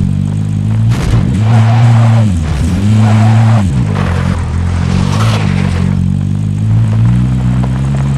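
A vehicle engine rumbles and revs up and down.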